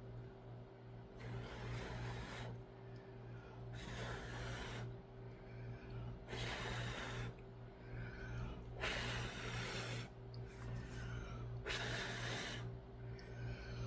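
A woman blows hard in repeated short puffs of breath.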